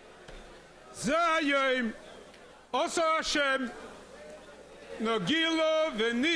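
An elderly man chants loudly into a microphone in an echoing hall.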